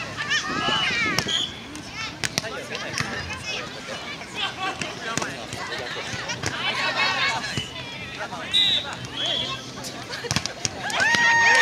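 A volleyball is struck by hand with sharp slaps.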